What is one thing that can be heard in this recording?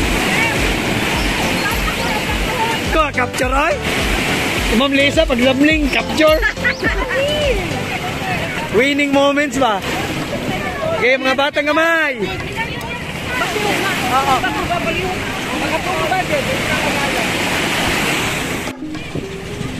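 Waves break and wash up onto a sandy shore.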